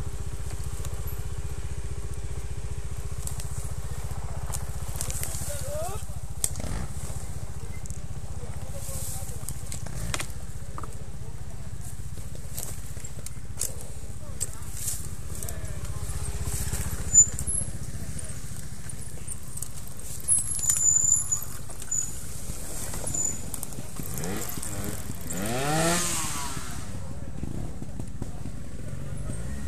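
A motorbike engine idles with a low, steady rumble.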